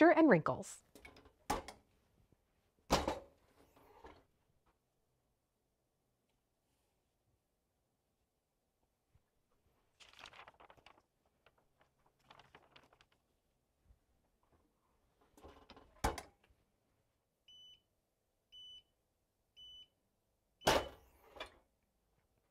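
A heat press lid clunks open and shut.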